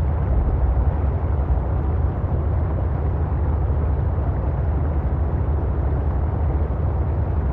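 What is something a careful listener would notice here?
A small submarine's engine hums steadily with a low rumble underwater.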